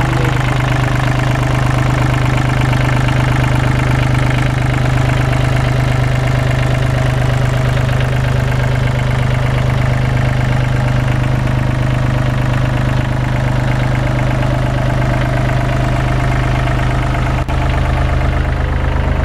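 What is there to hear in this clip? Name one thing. A diesel engine idles close by with a steady, loud, throbbing rumble.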